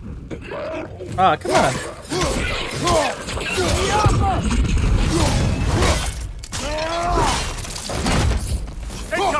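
Heavy blows land with dull thuds and crunches.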